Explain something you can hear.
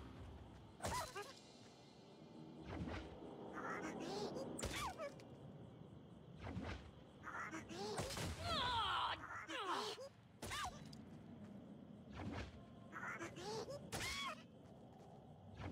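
A pickaxe strikes with sharp hits.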